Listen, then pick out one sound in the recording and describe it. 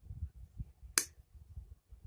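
A plastic test clip clicks onto a probe.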